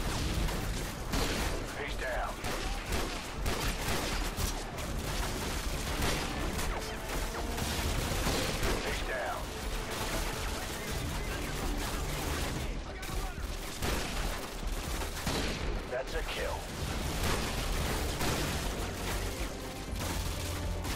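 Sniper rifle shots crack loudly, one after another.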